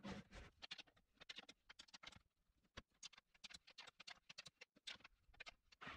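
A wrench clicks as it tightens a bolt.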